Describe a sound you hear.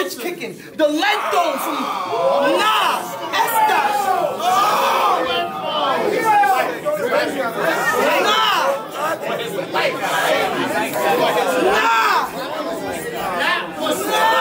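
A young man raps loudly and aggressively up close.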